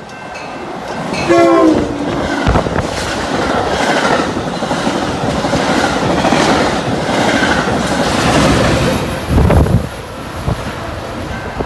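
Train wheels clatter rhythmically over the rails.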